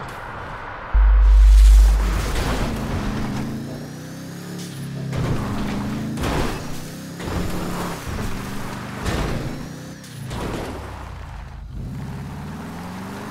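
A car thumps and bangs over rough ground.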